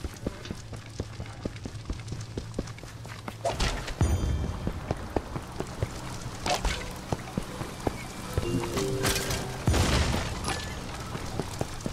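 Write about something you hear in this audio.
Quick footsteps tap along a path and stone bridge.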